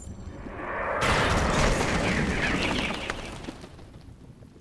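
A swirling rush of wind surges and fades.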